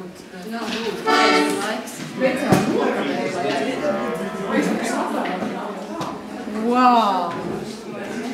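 An accordion sounds short chords.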